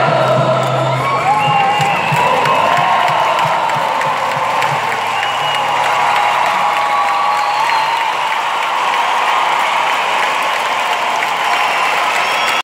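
A man sings through loudspeakers in a large echoing hall.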